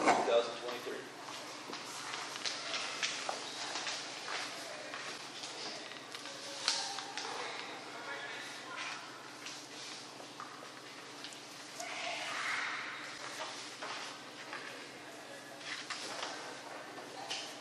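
Other adults talk quietly nearby.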